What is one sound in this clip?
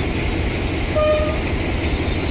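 A train horn gives a short toot.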